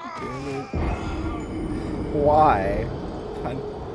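A young man laughs and exclaims loudly into a microphone, close by.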